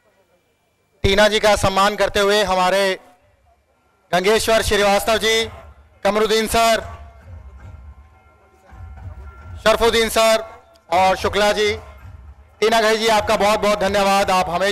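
A man speaks loudly through a microphone and loudspeakers.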